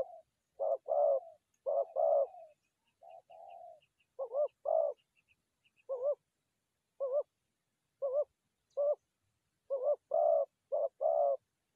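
A dove coos in repeated soft, hooting calls close by.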